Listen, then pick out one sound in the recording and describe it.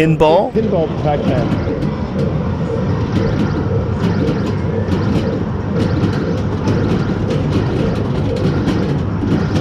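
Small balls clatter and roll inside an arcade machine.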